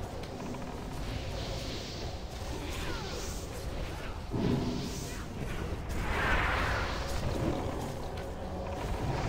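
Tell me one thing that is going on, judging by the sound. Fiery spells whoosh and burst in quick succession.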